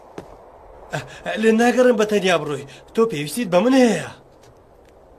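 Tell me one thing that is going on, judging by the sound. A young girl talks cheerfully.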